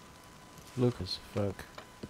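A fire crackles in a fireplace.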